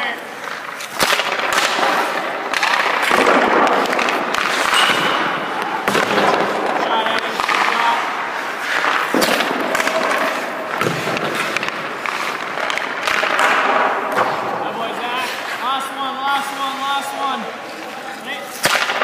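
A hockey puck smacks off a stick with a sharp crack.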